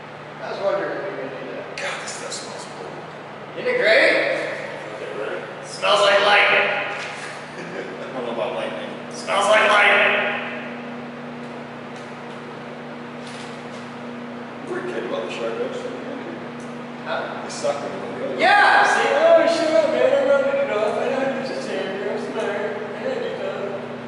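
A young man talks nearby with animation.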